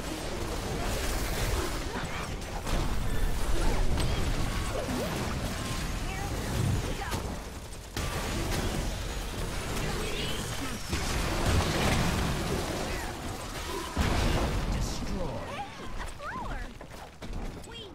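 Spells and weapons clash and explode in a busy game battle.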